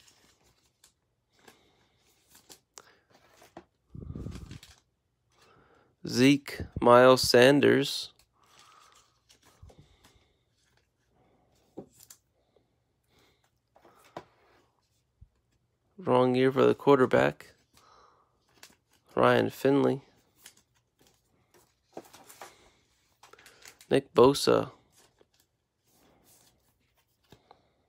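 Plastic card sleeves rustle and crinkle between fingers.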